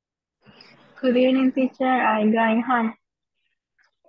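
A woman speaks in a drawn-out voice over an online call.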